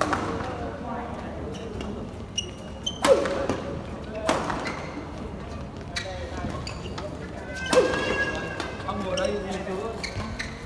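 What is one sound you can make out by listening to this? Shuttlecocks are struck with sharp racket smacks in a large echoing hall.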